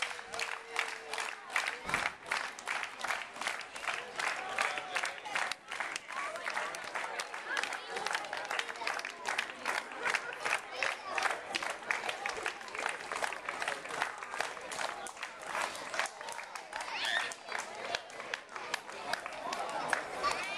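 A crowd claps in a steady rhythm outdoors.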